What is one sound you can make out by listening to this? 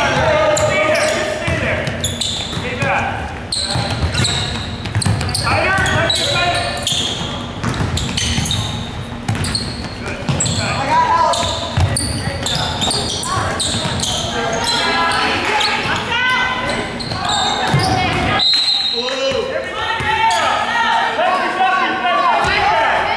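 Young women call out to one another in a large echoing gym.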